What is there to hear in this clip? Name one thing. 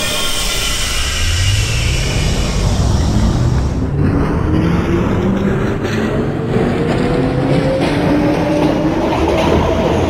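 A subway train's electric motors whine, rising steadily in pitch as the train speeds up.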